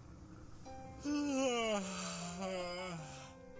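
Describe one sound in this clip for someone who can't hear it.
A young man cries out loudly with a falling voice.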